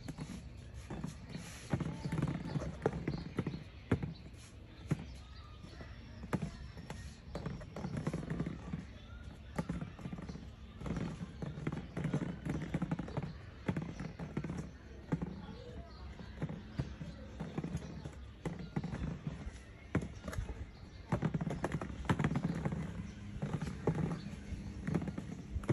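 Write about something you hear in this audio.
Plastic balls click and clatter as they are moved.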